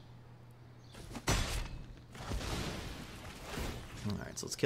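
A game spell plays a whooshing burst of magic.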